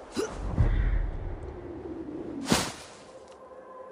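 A person lands hard on the ground with a thud.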